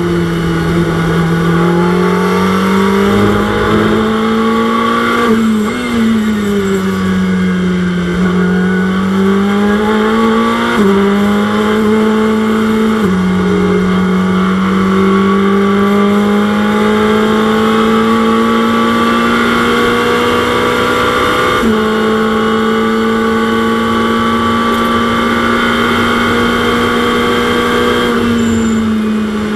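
A racing car engine drones steadily, its pitch rising and dropping sharply with gear changes.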